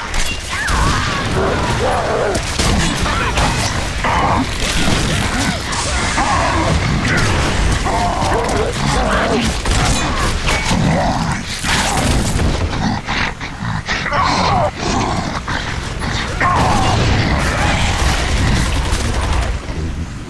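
Shotgun blasts boom.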